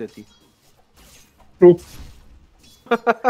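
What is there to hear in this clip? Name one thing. Game spells whoosh and crackle during a fight.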